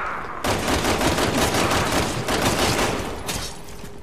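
A gun fires several shots in quick succession.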